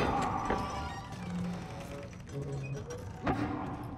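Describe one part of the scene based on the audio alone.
A heavy wooden door creaks open.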